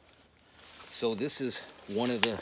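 A man speaks calmly, close by, outdoors.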